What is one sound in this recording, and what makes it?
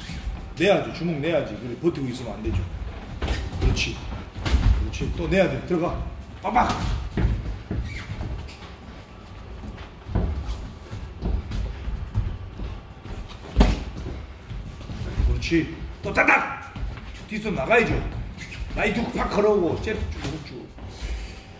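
A man talks in short bursts between punches, close by.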